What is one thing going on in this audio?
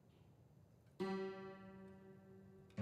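A piano note rings out and slowly fades.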